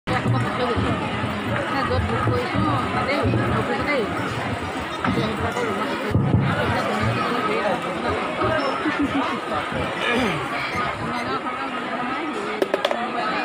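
A group of barrel drums is beaten loudly in a fast, driving rhythm.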